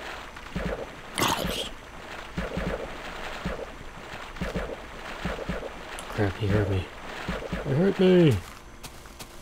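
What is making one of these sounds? A game zombie groans.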